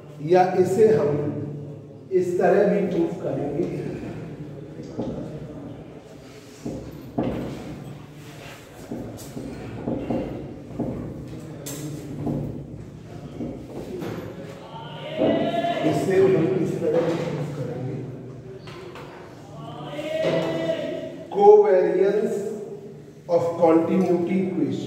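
A man lectures calmly.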